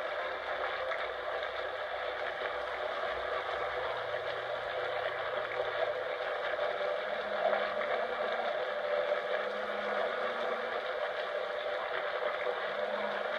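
Game music and effects play from a television speaker, heard in the room.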